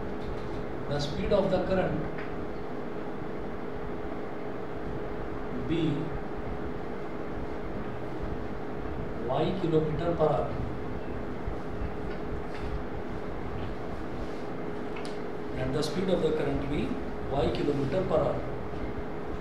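A man speaks calmly and slowly, close by, with long pauses.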